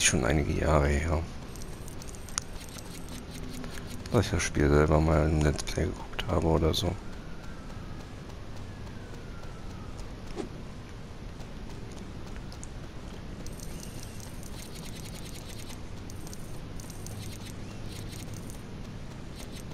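Quick footsteps patter on sand.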